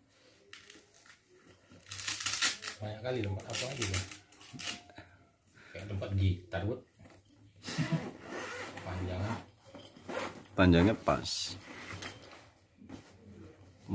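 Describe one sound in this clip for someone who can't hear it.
A fabric bag rustles and scrapes as it is handled.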